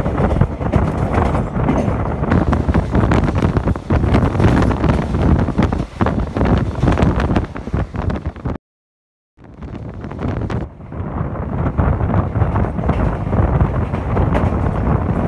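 A passenger train's wheels rumble and clatter over rail joints, heard from an open coach window.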